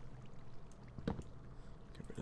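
A tool breaks stone with short, sharp cracking knocks.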